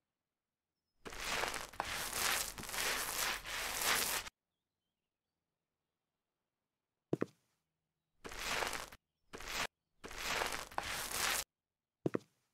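A paint roller rolls wetly across a wall in bursts.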